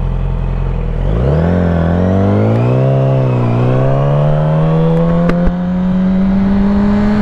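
A motorcycle engine revs up and roars as it pulls away, its pitch rising.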